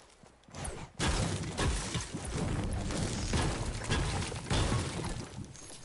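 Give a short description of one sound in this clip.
A pickaxe repeatedly smashes against wood and glass.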